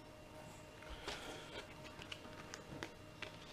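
Small items click and tap on a table.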